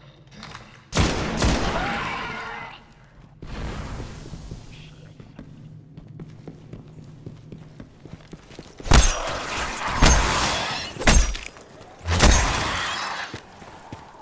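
Loud gunshots and blasts burst out in short bursts.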